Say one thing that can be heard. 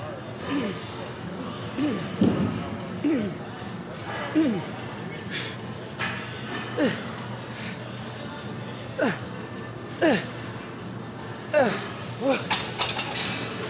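A man grunts and groans with strain, close by.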